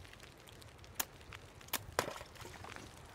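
Ice cracks and breaks.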